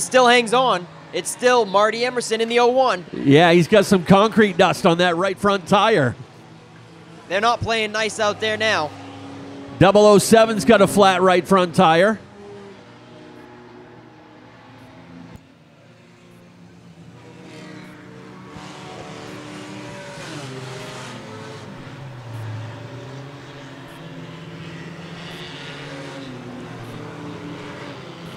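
Race car engines roar steadily.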